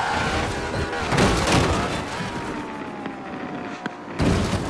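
A car crashes and tumbles with loud thuds.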